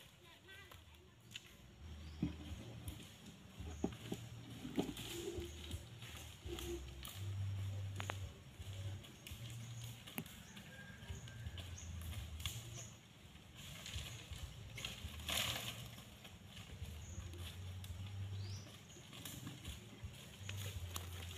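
Dry leaves crackle and rustle under footsteps.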